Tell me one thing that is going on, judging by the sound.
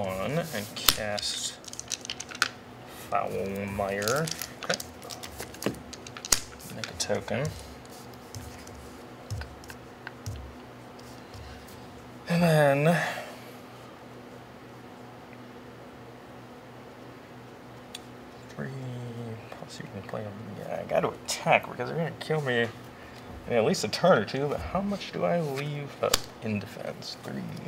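Playing cards tap and slide on a table mat.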